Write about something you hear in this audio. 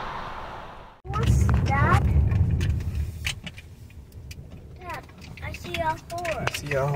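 A car engine rumbles low, heard from inside the car.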